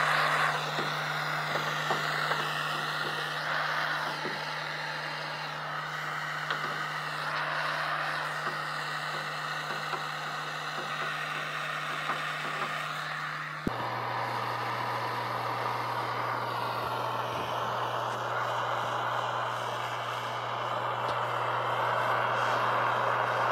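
A gas torch roars with a steady hiss.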